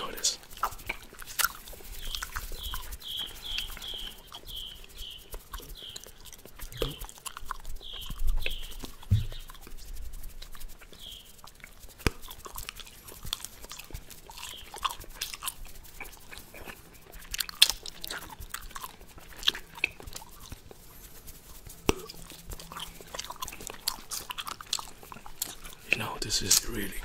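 A man makes wet mouth clicks and pops close to a microphone.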